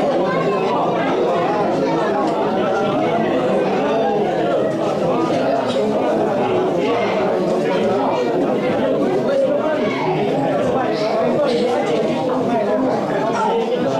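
A crowd of men and women talk over one another nearby in a lively murmur.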